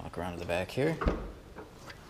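A tailgate latch clicks as a hand pulls its handle.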